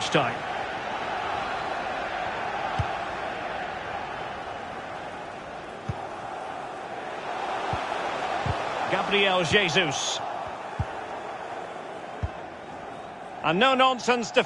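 A large crowd murmurs and cheers in the distance.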